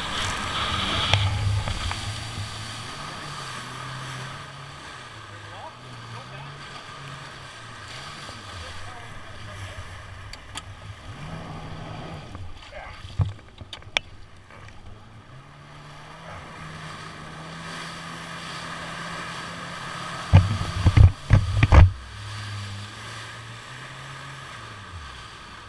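Water splashes and hisses against a jet ski's hull.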